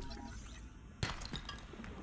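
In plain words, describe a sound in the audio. A piece of rock is broken off with a short crunch.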